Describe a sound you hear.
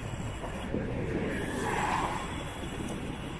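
A small truck drives past on a road.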